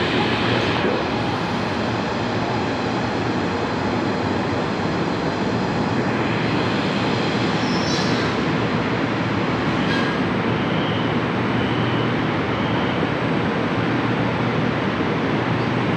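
A stopped train's motor hums steadily.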